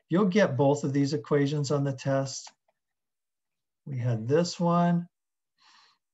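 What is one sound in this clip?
A man explains calmly through a close microphone, with pauses.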